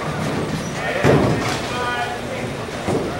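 Bowling pins crash and clatter as the ball strikes them.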